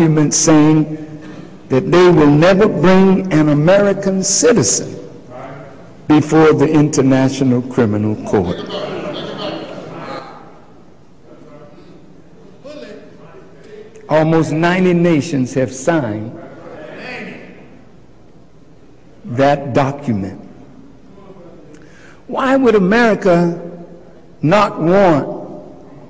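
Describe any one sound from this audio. A man speaks forcefully into a microphone, his voice echoing outdoors.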